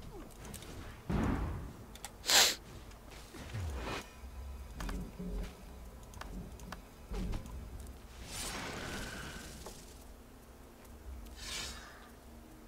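Game menu sounds click and chime as menus open.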